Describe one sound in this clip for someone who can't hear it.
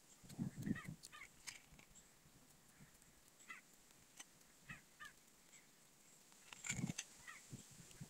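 A matchbox rattles as it is handled.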